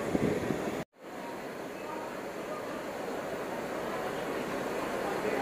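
A bus engine idles nearby with a low steady rumble.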